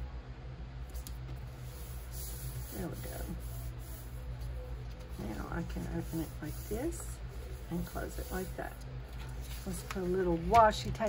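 Paper rustles and slides as sheets are handled.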